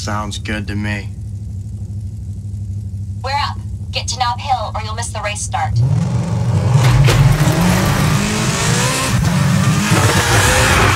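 A car engine hums steadily, then revs loudly as the car speeds off.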